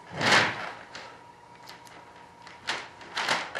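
A knife scrapes along a plastic edge.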